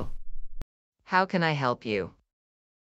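A woman greets and asks a question calmly.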